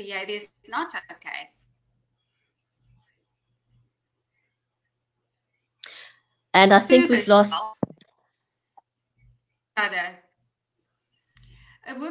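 An older woman speaks calmly over an online call.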